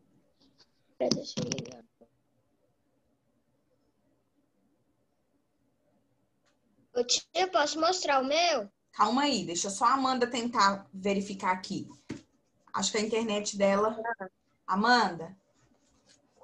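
A woman speaks animatedly over an online call.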